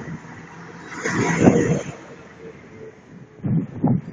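A motorbike engine buzzes as it passes close by.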